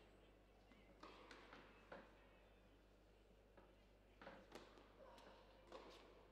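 A tennis ball bounces on the court several times.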